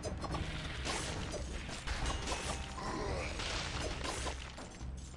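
Game sound effects of rapid fighting clash and crackle.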